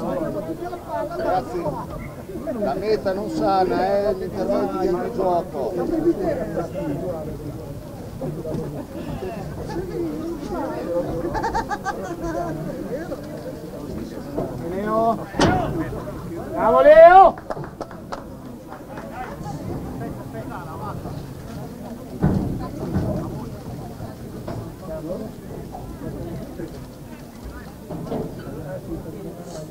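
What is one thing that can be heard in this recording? Adult spectators nearby chatter and call out outdoors.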